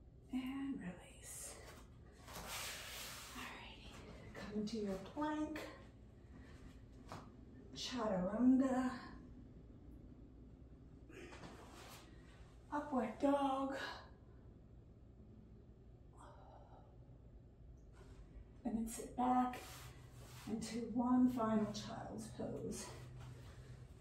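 A woman speaks calmly, giving slow instructions close by.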